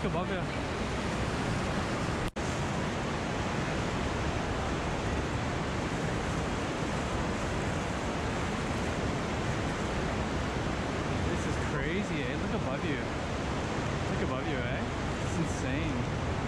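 Water rushes steadily.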